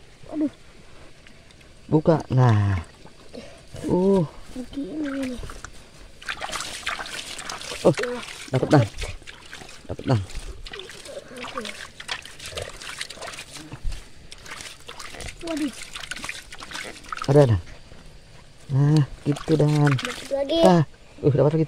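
Water splashes and sloshes as hands scoop through a shallow muddy puddle.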